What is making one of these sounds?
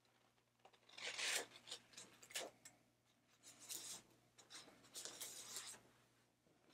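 Paper rustles softly as a sheet is lifted and folded back.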